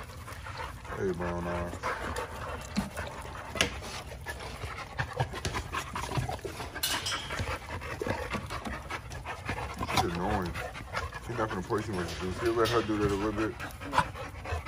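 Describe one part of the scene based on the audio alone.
Large bully-breed dogs growl and snarl while play-fighting.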